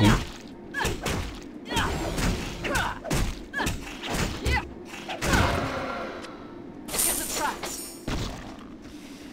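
Magic blasts and weapon strikes crackle and thud in quick bursts.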